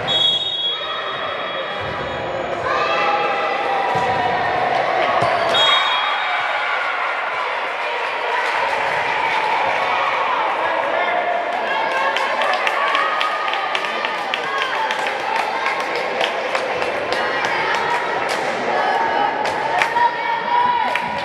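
A volleyball is struck with loud slaps.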